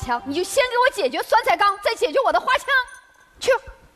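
A young woman speaks sharply and with animation on a stage microphone.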